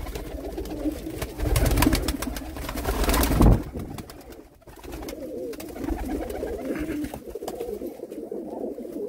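Many pigeons coo in low, throaty warbles close by.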